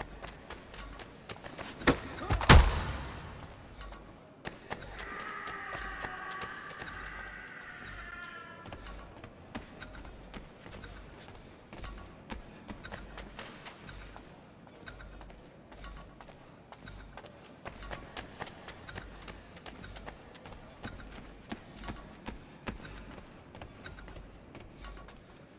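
Bare footsteps patter quickly on wooden and stone floors.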